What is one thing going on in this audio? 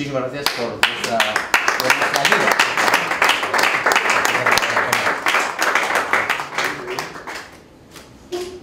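A group of people applaud in a room.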